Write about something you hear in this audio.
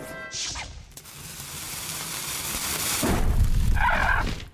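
A fiery spell roars and crackles, swelling louder.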